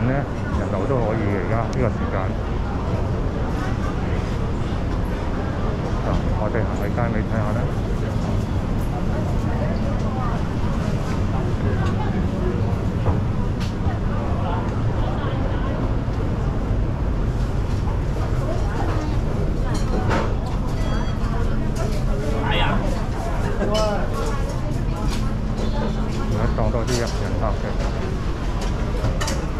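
A crowd of people chatters in a large, echoing hall.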